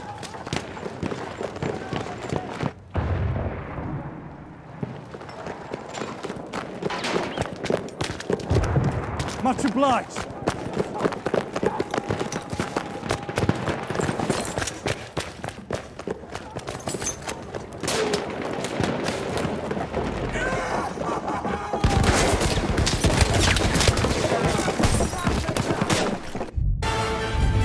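Rifles fire in rapid, sharp cracks.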